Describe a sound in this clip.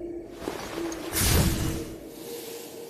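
A blade whooshes through the air in a rush of swirling energy.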